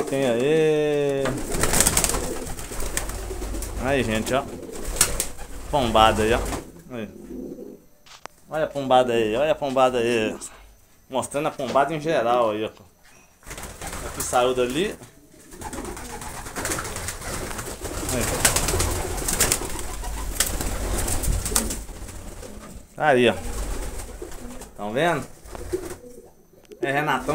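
Pigeons coo repeatedly nearby.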